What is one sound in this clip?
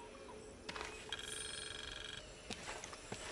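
A soft chime rings out.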